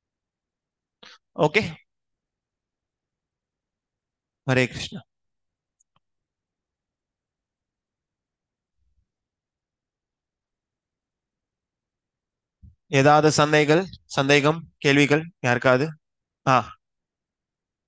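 A man speaks calmly in short bursts through a headset microphone over an online call.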